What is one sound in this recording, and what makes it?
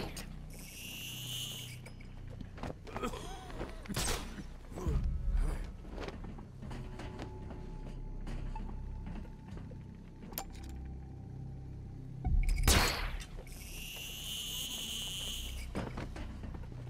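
A cable line whines and whirs as a figure slides along it.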